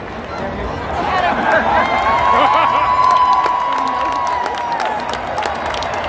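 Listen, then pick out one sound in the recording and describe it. A stadium crowd cheers and whoops loudly.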